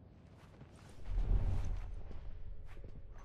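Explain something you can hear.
A heavy thud and scuffle sounds as one man grabs another.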